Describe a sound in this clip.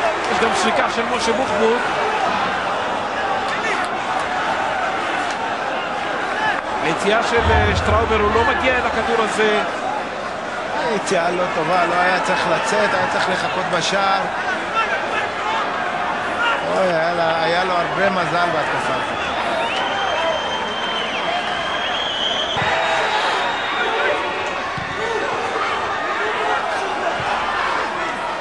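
A crowd cheers and shouts in a large stadium.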